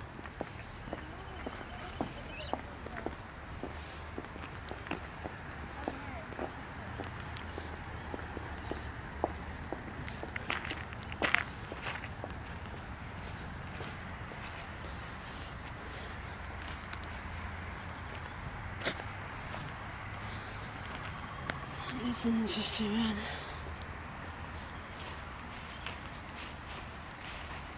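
Footsteps crunch and scuff along a path outdoors.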